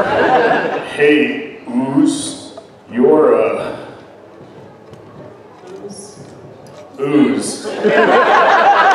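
A man speaks calmly into a microphone, heard over loudspeakers in a large hall.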